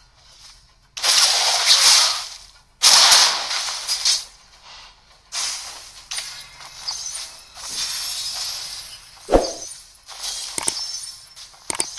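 Video game spell effects whoosh and burst during a fight.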